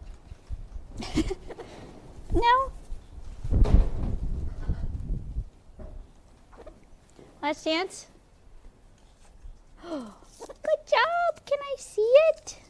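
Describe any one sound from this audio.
A parrot whistles and squawks in sliding calls.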